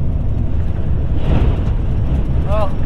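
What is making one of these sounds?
A large truck rushes past close by.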